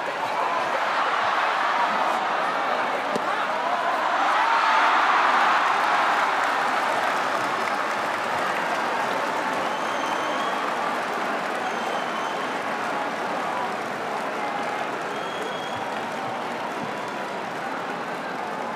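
A large crowd cheers and roars loudly in an echoing hall.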